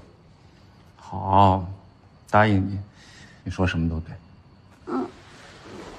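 A young man speaks calmly up close.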